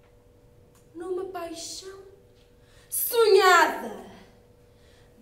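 A young woman speaks expressively, close by.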